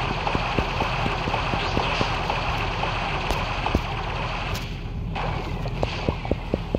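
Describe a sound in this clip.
Video game battle sound effects blast and splash.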